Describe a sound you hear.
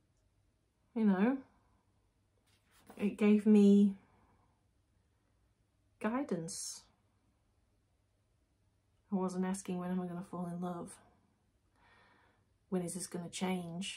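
A young woman talks close to a microphone in short, expressive bursts with pauses.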